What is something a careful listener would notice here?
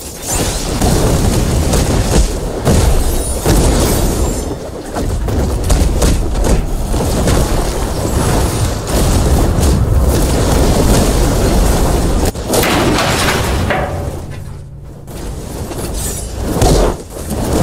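Punches land with quick thuds.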